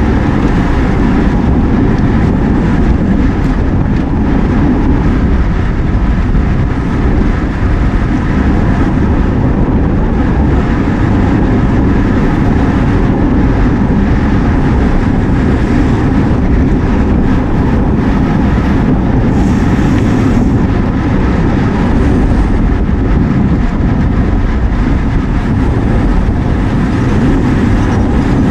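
Wind buffets a microphone with a loud, steady roar.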